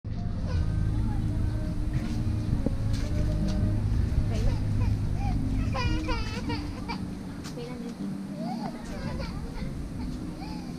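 Footsteps shuffle on a paved path.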